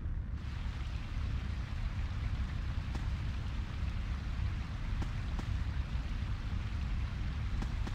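Flames roar steadily.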